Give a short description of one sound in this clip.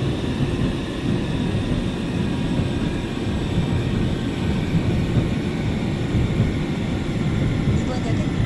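A train carriage rumbles steadily along the tracks.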